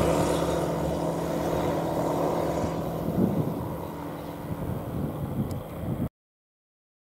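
A small propeller plane drones overhead.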